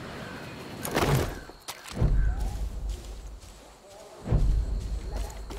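A pistol fires sharp shots.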